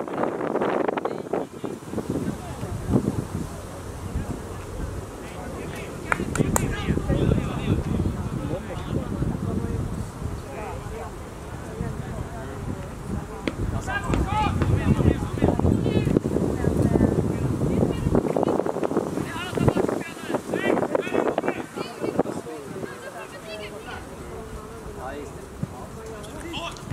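A man and a woman nearby talk casually outdoors.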